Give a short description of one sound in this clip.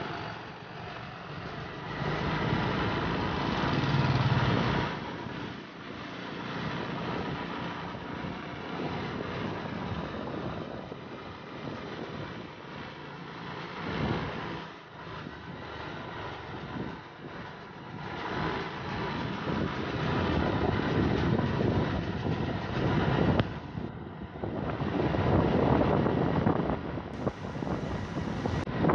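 Small motorcycles ride ahead on a concrete road.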